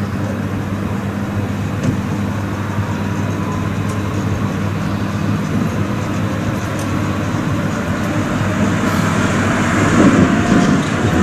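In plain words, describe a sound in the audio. A tram approaches with a hum and rumble that grow louder.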